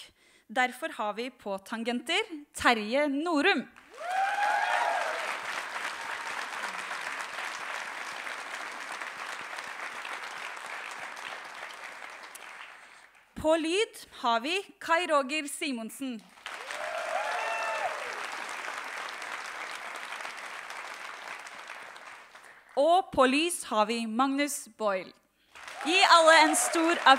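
A young woman speaks cheerfully into a microphone over loudspeakers.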